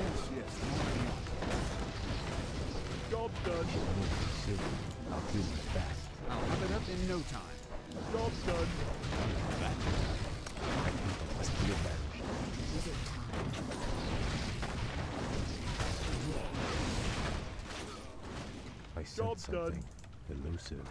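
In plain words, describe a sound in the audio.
Game explosions and fire blasts burst again and again.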